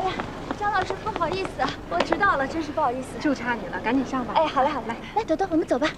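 A young woman talks cheerfully up close.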